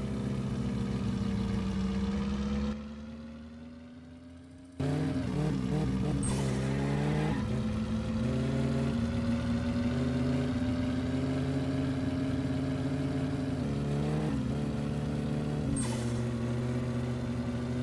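A car engine hums steadily and revs up and down through gear changes.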